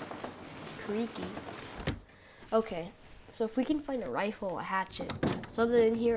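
A wooden door creaks open and shuts.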